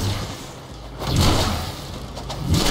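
An icy blast bursts with a loud crackling rush.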